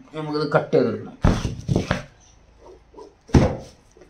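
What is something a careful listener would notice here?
A plastic tray thumps down on a table.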